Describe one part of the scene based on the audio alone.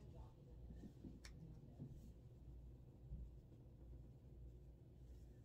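A makeup brush brushes softly against skin.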